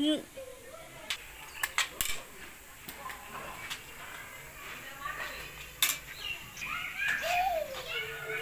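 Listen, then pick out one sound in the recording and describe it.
A small child babbles and talks nearby.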